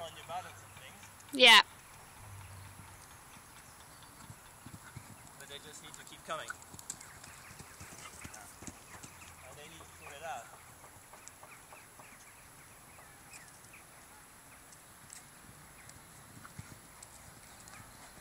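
A horse canters on soft sand with muffled hoofbeats.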